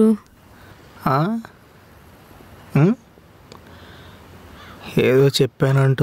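A young man speaks in short, expressive phrases close by.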